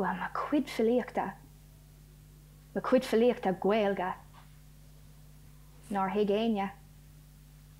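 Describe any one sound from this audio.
A young woman speaks calmly and slowly, as if reciting.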